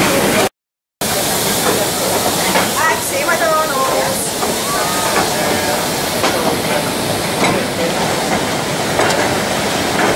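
A small train rattles along its track.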